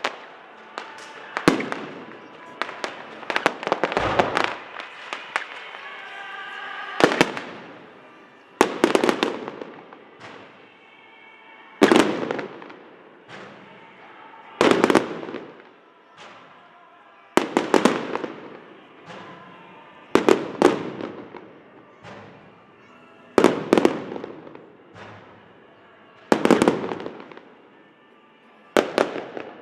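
Fireworks crackle and fizz after the bursts.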